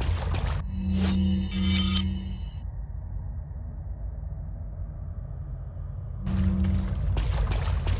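A video game menu beeps as it opens and closes.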